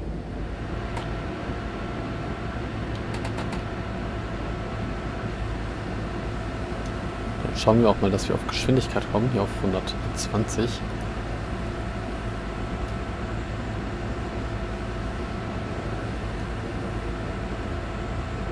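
An electric locomotive motor hums steadily.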